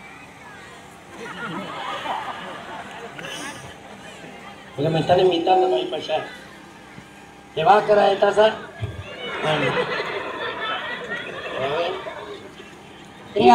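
A crowd cheers and calls out.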